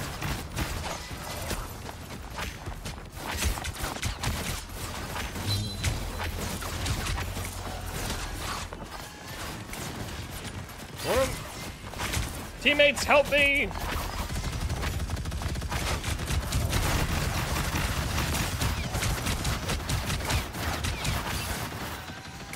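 Rapid gunfire and energy blasts crackle from a video game throughout.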